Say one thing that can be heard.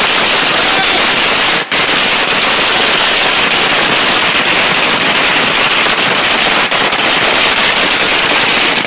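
Fireworks hiss and crackle loudly close by.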